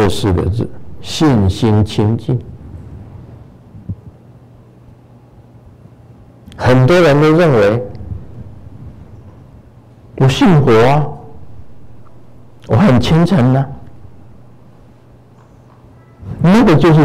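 An elderly man speaks calmly in short phrases through a microphone in an echoing hall.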